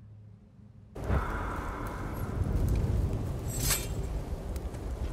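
A fire crackles in a brazier outdoors.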